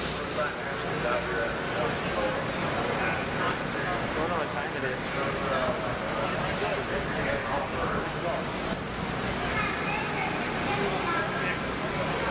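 Men talk with each other close by.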